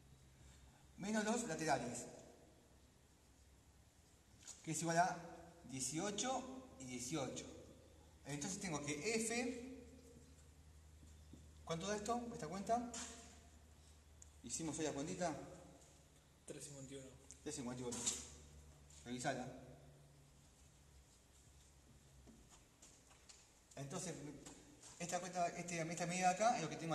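A man talks calmly and explains, close by.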